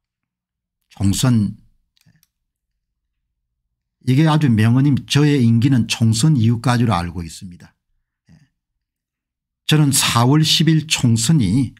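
An older man speaks calmly into a close microphone, with pauses.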